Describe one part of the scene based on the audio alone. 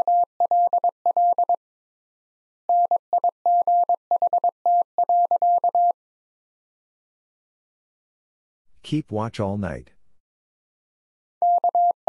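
A Morse code key beeps out a message as a steady high tone in quick short and long bursts.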